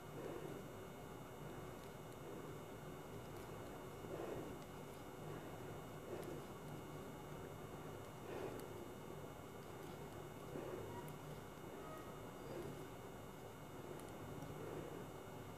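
Yarn rustles faintly as it is pulled through stitches.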